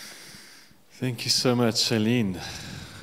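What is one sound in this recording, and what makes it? A man speaks through a microphone in a large room.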